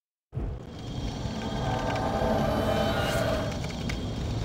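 A magical shimmer sparkles and chimes.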